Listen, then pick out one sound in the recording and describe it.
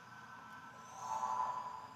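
A magical shimmer rings out as a chest bursts open.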